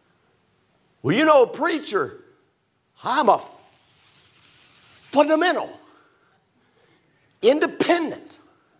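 A man preaches into a microphone in bursts, his voice echoing through a large hall.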